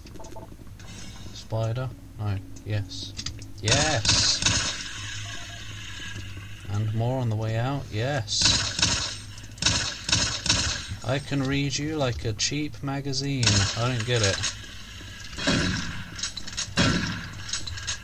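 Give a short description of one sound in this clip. Gunshots fire loudly, one after another, with an echo.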